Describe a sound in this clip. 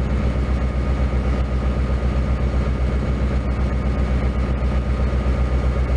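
A diesel locomotive rumbles past.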